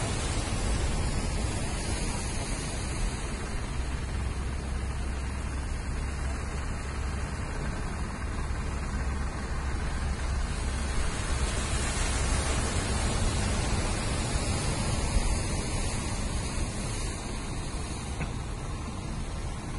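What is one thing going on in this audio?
Waves wash steadily onto the shore.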